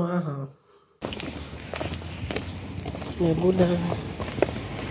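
Footsteps tap on paving stones outdoors.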